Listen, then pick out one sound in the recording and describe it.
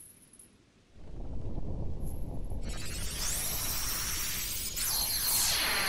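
A powerful magical beam fires with a loud, shimmering rush.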